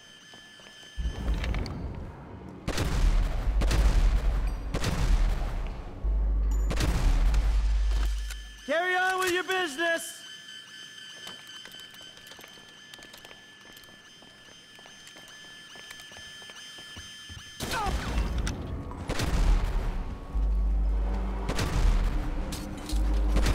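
Pistol shots ring out in rapid bursts, echoing in a hard-walled space.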